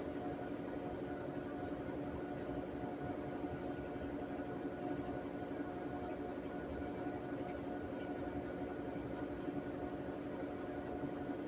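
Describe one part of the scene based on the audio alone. A top-load washing machine hums and whirs as its drum spins.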